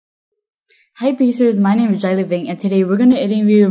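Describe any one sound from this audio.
A young woman speaks brightly and with animation into a close microphone.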